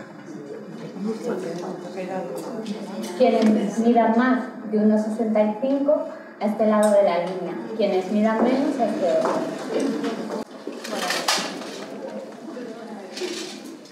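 Several adults chatter at once.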